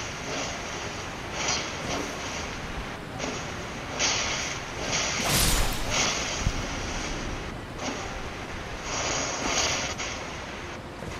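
Wind gusts and rushes in waves.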